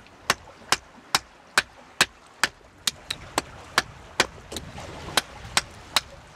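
A hatchet taps steadily on a stick of wood, splitting it against stone.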